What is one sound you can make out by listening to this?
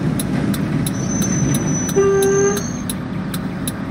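Bus doors open with a hiss and a chime.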